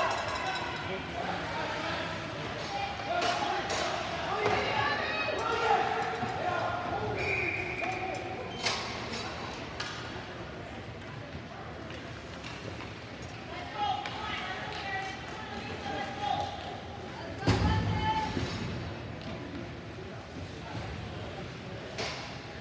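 Spectators chatter and call out in a large echoing arena.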